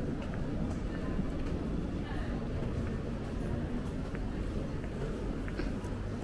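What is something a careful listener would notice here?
Footsteps of people walking pass close by on stone paving.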